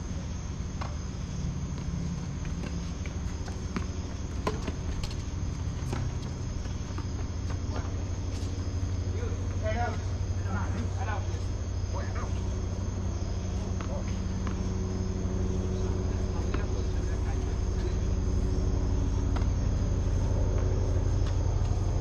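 Tennis balls are struck with rackets, giving sharp pops outdoors.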